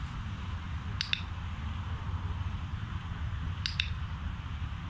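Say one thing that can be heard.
A training clicker clicks sharply.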